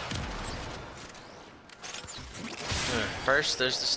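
Shotgun blasts boom in quick bursts.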